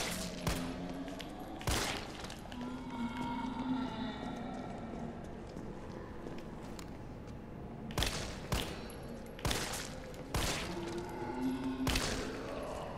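Pistol shots ring out one after another with a sharp echo.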